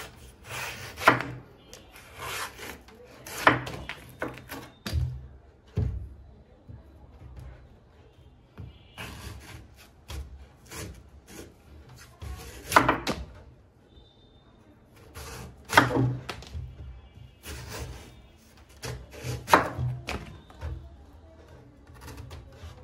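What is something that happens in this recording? A knife slices through a coconut's husk with crisp scraping strokes.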